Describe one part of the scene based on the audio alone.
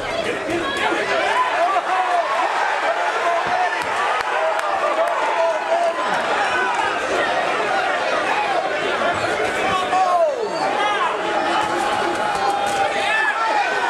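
Boxing gloves thud against a boxer's head guard.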